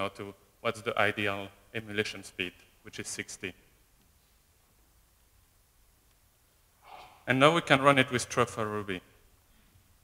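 A man speaks through a microphone in short bursts, echoing in a large hall.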